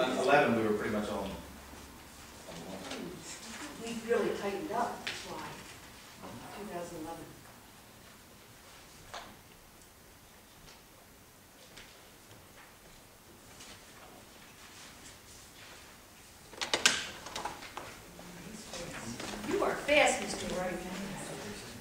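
Adults talk calmly nearby.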